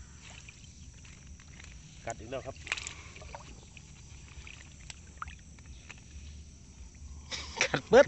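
A caught fish flaps and splashes against the water.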